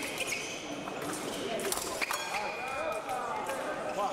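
Steel blades clash and scrape.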